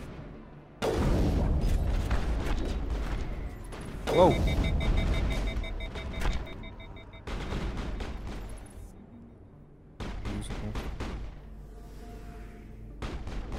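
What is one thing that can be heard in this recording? Gunfire cracks in loud bursts, with sharp shots and short rattling volleys.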